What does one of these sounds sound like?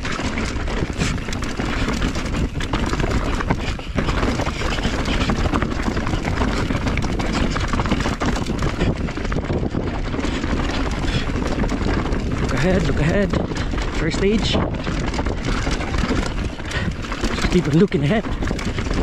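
Wind roars loudly past a fast-moving rider.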